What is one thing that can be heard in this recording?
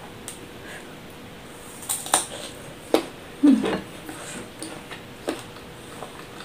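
A young woman chews food noisily close to a microphone.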